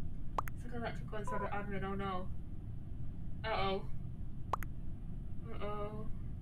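A young woman speaks close to a microphone in short, animated bursts.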